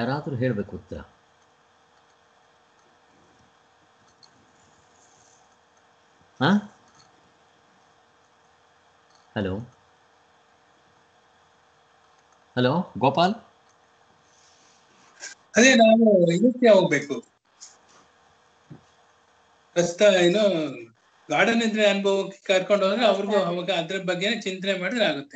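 An elderly man talks calmly in short bursts over an online call.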